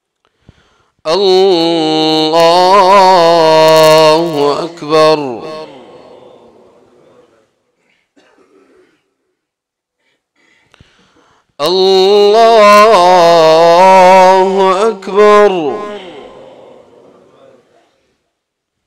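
A man chants loudly through a microphone, his voice echoing in a large hall.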